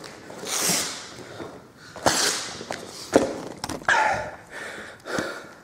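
Punches and stomps thud heavily on a bag.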